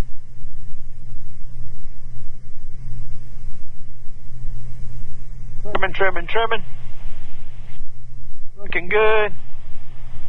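An airplane engine drones steadily.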